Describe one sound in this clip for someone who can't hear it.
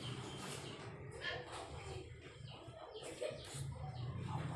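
A woman talks softly nearby.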